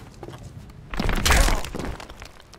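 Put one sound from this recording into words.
A burst of spiked debris rips through the air.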